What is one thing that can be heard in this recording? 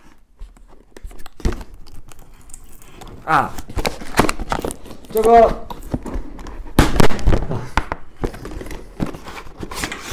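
Cardboard packaging rustles and tears as a box is opened.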